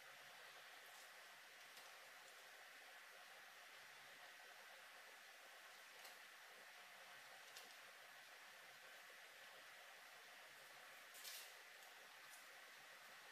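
Paper rustles and crinkles softly close by.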